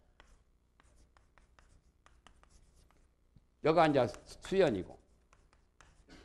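Chalk taps and scratches on a blackboard.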